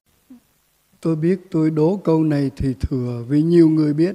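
An elderly man sings a slow chant through a microphone.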